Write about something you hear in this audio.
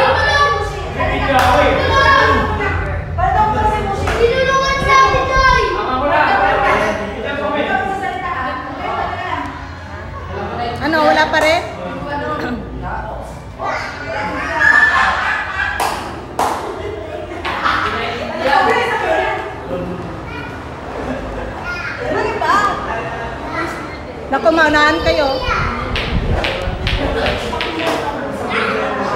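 A young woman talks back with animation.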